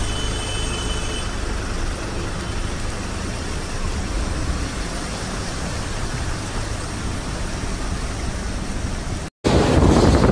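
A motor scooter engine hums steadily while riding through water.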